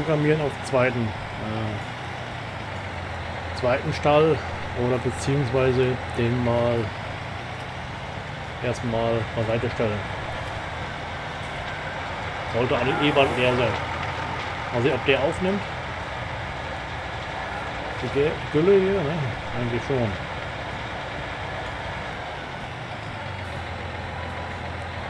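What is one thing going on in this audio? A tractor engine hums steadily.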